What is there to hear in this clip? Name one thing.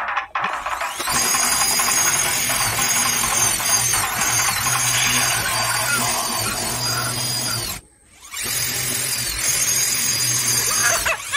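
An electric drill whirs as it cuts through a ceiling panel.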